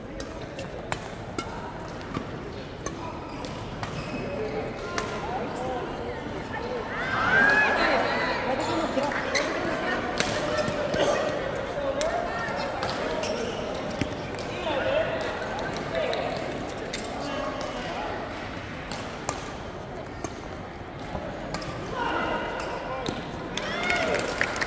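Players' shoes squeak on the court floor.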